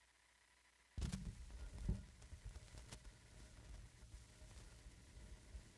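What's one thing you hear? A stylus drops onto a vinyl record with a thump and crackles.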